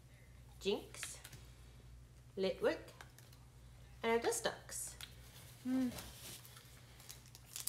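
Trading cards rustle and flick softly as they are handled.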